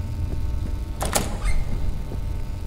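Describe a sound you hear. A door is pushed open with a metallic clunk.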